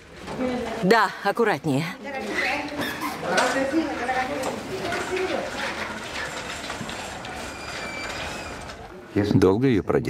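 Several men and women talk over each other nearby.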